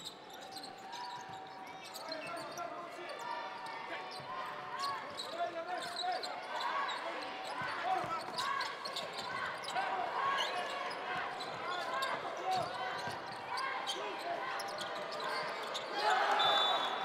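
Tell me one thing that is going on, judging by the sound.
A basketball bounces on a hardwood court in a large echoing arena.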